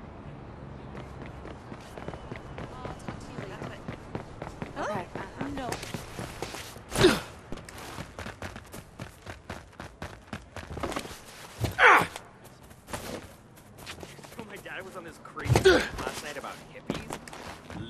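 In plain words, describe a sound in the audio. Footsteps run quickly on pavement and grass.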